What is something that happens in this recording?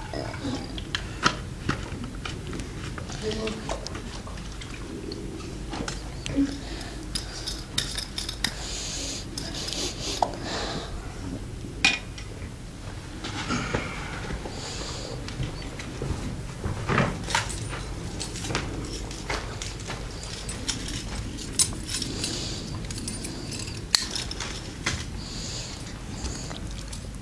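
Metal cans and bottles clink and knock against stone.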